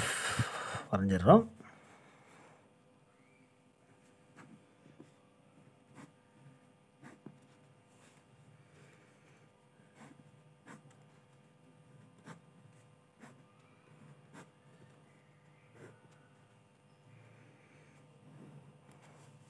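A pen scratches and taps on paper.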